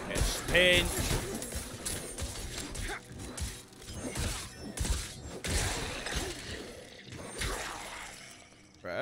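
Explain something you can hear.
Game combat sounds thud and crash.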